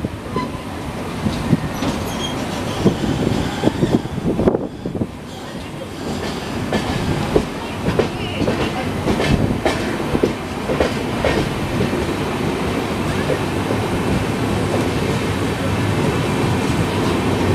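A passenger train rumbles along the track, heard from an open window.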